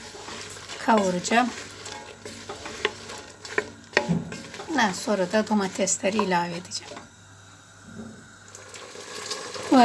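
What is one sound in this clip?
A wooden spoon stirs peppers in a metal pot.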